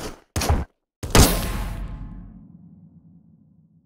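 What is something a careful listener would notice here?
A retro game character bursts apart with a loud crackling explosion that slowly fades.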